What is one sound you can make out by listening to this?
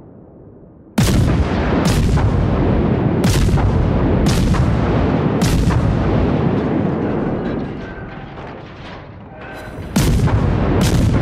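Heavy naval guns fire in loud, booming salvos, one after another.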